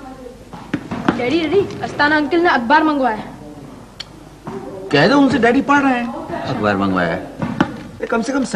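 A boy speaks nearby.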